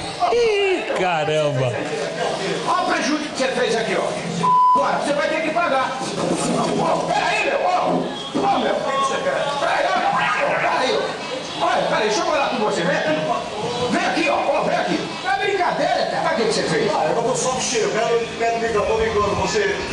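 A man shouts angrily outdoors.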